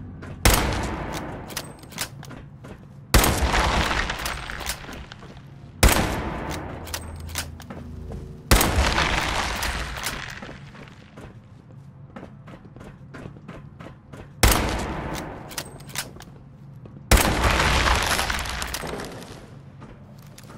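A heavy gun fires single loud shots that boom and echo away.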